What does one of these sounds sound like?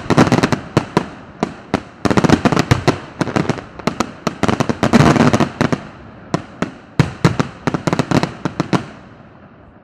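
Firecrackers burst in rapid, loud volleys close by.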